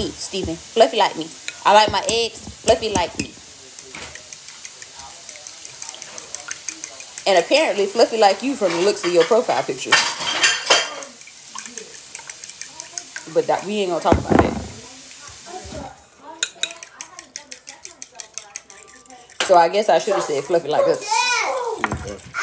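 A fork whisks eggs against a glass bowl with rapid clinking taps.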